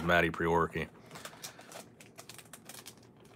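A foil wrapper crinkles.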